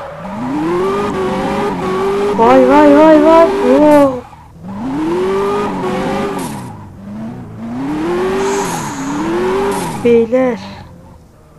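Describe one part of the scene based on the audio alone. A car engine revs up and down hard.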